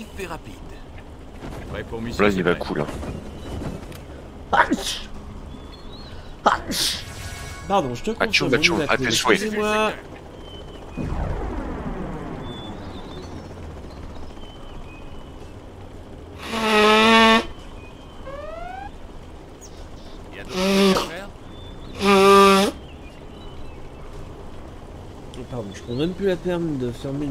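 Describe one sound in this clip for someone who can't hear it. A man talks casually close to a microphone.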